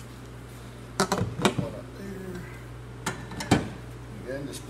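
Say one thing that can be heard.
A metal bar clanks and knocks against metal.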